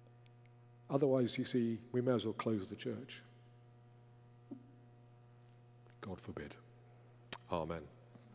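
An elderly man speaks calmly into a microphone in a large echoing room.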